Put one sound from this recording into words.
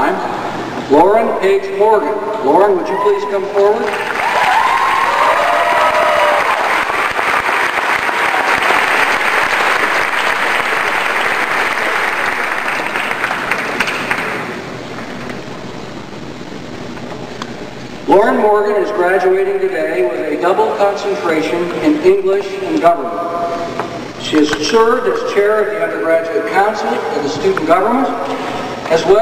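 An elderly man speaks calmly through a microphone, echoing in a large space.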